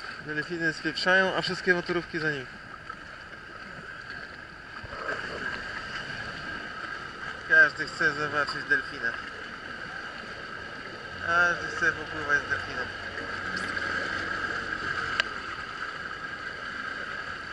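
Water sloshes and splashes close by.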